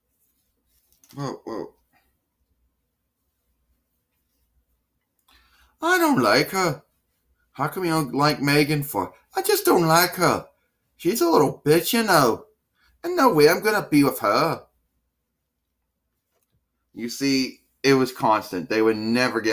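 A man speaks up close in playful, animated voices.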